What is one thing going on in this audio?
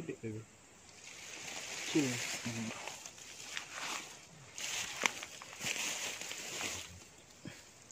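Footsteps rustle and crunch through dense grass and leaves.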